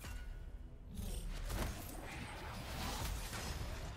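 A magical portal whooshes open with a rumbling swirl.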